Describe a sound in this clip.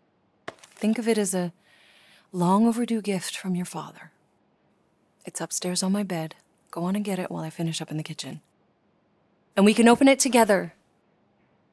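A teenage girl answers quietly.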